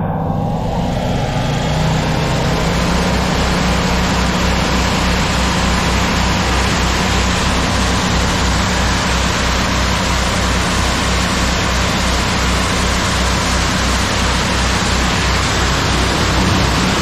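A powerful jet of water hisses and splashes onto the road.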